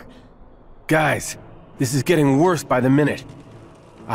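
A man speaks calmly in a deep voice.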